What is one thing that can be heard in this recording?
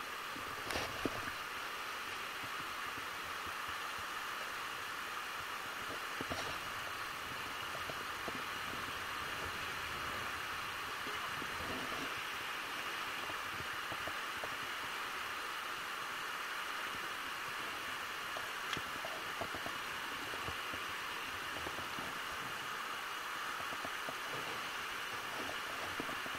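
A fast river rushes and splashes over rocks close by.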